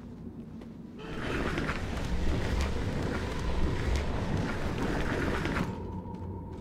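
A heavy wooden chest scrapes across a wooden floor.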